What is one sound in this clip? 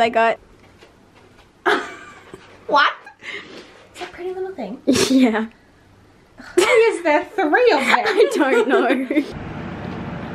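A young woman talks cheerfully and laughs close by.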